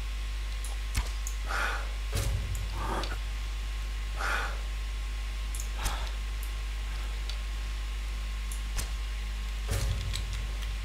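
A bow twangs as arrows are loosed.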